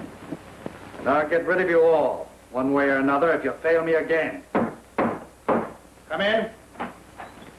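A man speaks sternly and threateningly.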